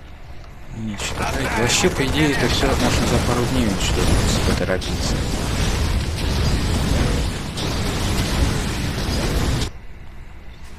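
Rapid gunfire rattles in a battle.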